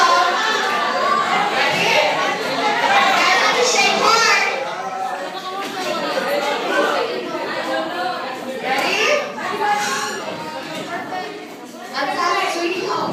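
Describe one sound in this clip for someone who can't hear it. A crowd of teenagers chatter and talk over one another nearby in an echoing room.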